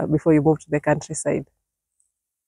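A young woman speaks warmly and clearly, close by.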